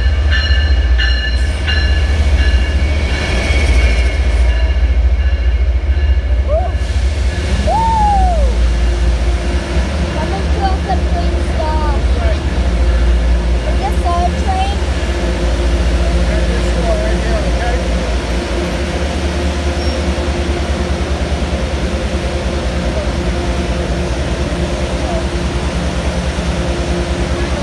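A train rumbles loudly past at close range.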